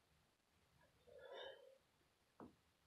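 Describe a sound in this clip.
A young woman grunts with effort close by.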